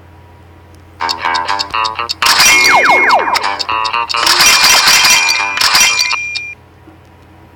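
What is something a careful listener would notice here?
Bright electronic menu jingles chime and tinkle.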